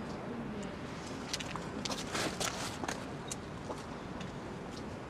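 High heels click on pavement.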